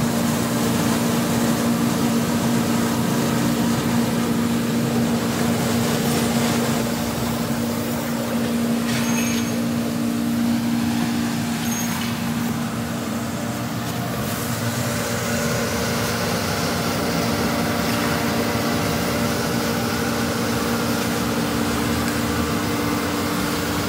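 A machine hums steadily nearby.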